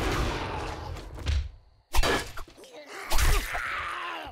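A knife stabs into a zombie with wet thuds.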